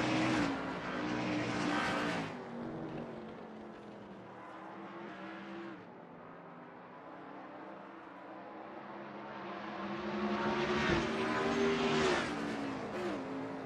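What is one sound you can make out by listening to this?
A race car engine roars, its pitch rising and falling as it shifts gears.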